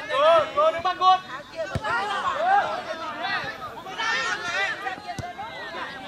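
Men shout to each other outdoors across an open field.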